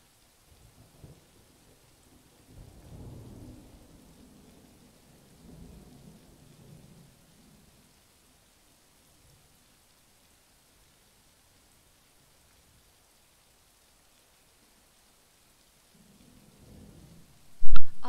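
A young woman speaks quietly into a nearby microphone, in short bursts.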